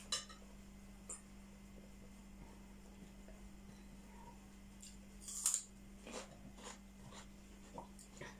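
A young woman slurps a drink from a cup.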